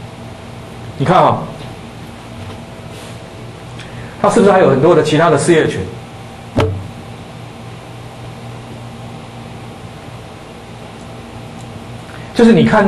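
A man speaks into a microphone in short bursts, lecturing with long pauses.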